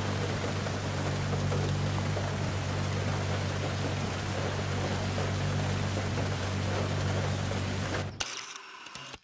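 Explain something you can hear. A sports car engine drones steadily at speed.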